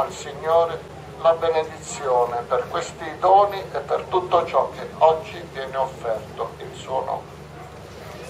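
A man speaks through a loudspeaker outdoors.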